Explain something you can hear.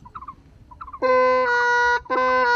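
A man plays a bamboo flute with loud, steady, reedy notes.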